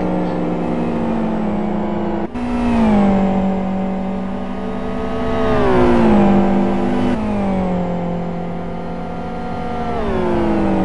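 Racing car engines roar loudly at high revs, the pitch dropping as gears shift.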